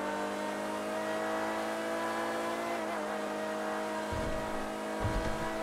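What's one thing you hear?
A supercar engine roars at full throttle.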